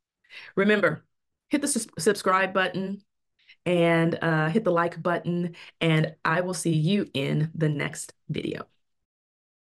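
A woman talks calmly into a close microphone.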